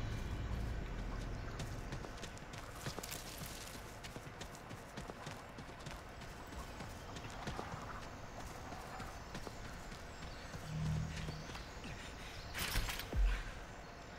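Footsteps run over dirt and through grass.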